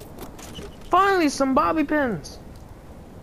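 A metal toolbox lid creaks open.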